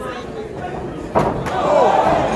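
A boxer falls heavily onto the ring canvas.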